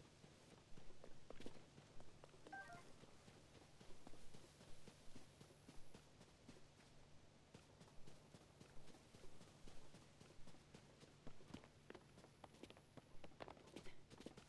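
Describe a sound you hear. Footsteps run lightly over grass.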